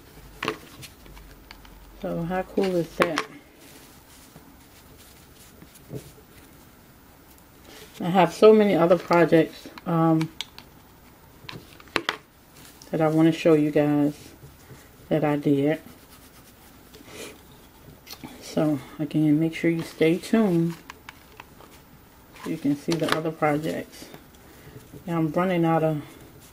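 Rope rustles and rubs against a glass jar.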